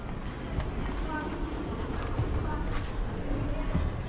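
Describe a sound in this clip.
Footsteps shuffle into an elevator.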